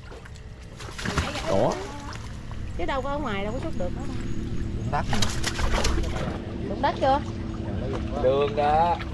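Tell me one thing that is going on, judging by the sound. Water splashes as a man wades through mud.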